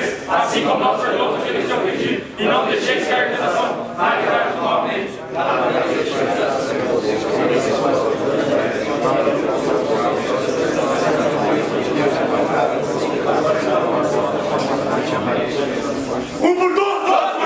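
A man speaks loudly and with passion to a group, heard close by.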